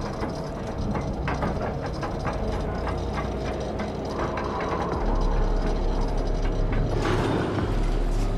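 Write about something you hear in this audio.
A metal lift rumbles as it rises.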